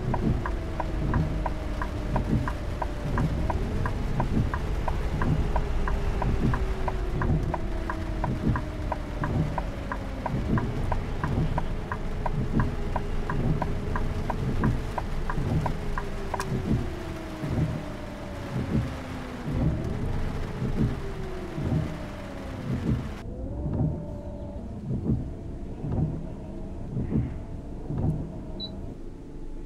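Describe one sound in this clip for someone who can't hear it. A bus engine hums steadily, rising and falling in pitch.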